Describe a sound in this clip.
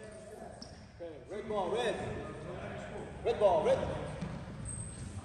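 Young men shout and cheer in a large echoing gym.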